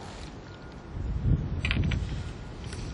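A fishing rod is handled with a rustle and knocks close by.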